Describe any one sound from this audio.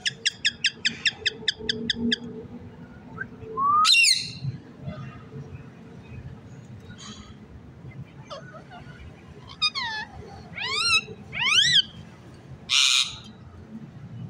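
Parrots squawk and screech loudly nearby.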